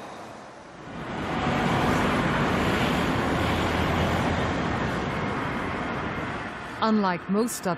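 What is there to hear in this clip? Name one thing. A jet plane roars overhead and then fades.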